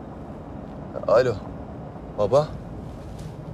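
A young man speaks briefly into a phone.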